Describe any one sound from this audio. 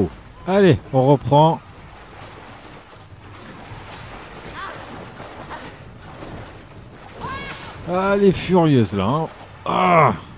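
Water splashes as feet run through it.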